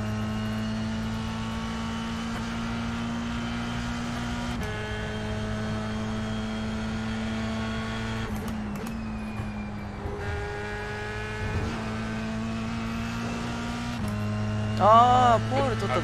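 A racing car engine drones steadily, its pitch shifting with gear changes.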